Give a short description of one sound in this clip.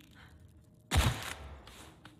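A bow string twangs as an arrow is fired.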